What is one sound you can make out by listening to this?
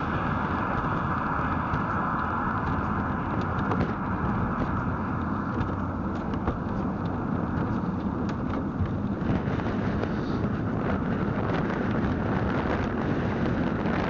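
A car engine drones steadily while driving.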